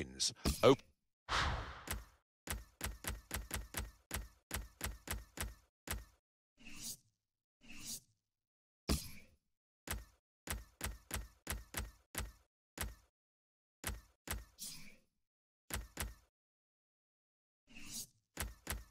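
Menu clicks tick rapidly as selections change.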